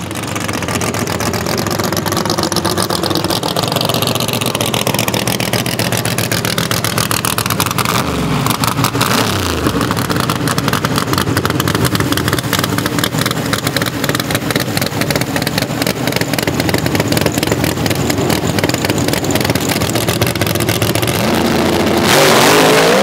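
A V8 drag car idles roughly.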